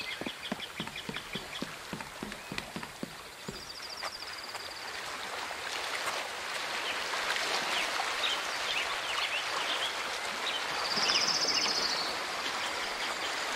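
Water laps gently against a dock.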